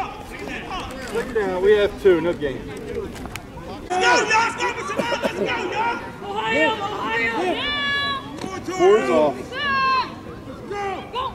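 Adults and children shout and call out loudly outdoors.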